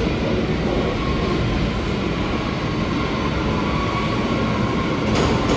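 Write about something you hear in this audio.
Train wheels screech faintly on the rails.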